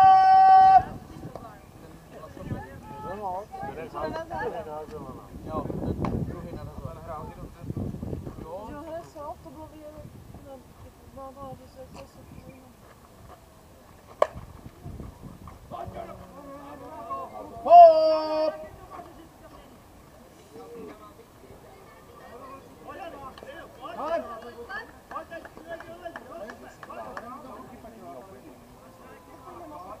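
A man and young women call out at a distance outdoors.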